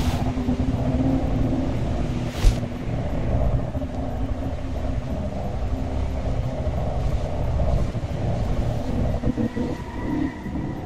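A small engine hums steadily as a vehicle speeds over sand.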